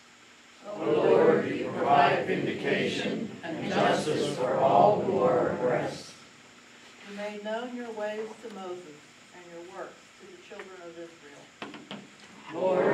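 An elderly woman reads aloud calmly into a microphone.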